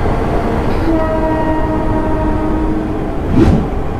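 A train horn sounds loudly.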